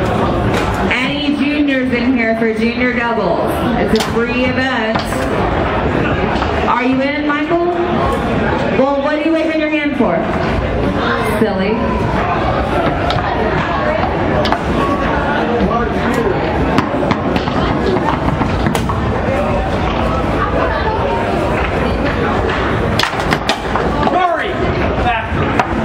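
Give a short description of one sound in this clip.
A foosball ball cracks sharply against the walls of the table and the players' figures.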